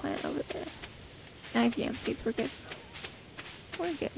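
Quick light footsteps patter on dirt.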